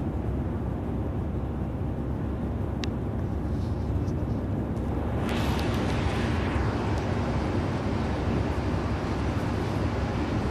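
Tyres hiss on the road surface.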